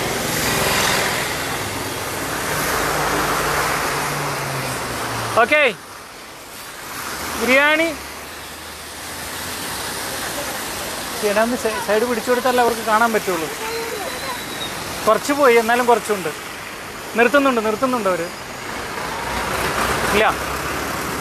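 Car tyres hiss on a wet road as traffic passes.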